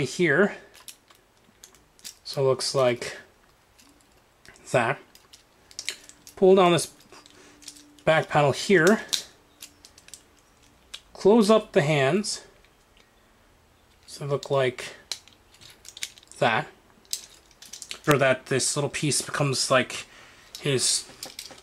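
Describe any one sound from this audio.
Small plastic toy parts click and rattle as they are handled.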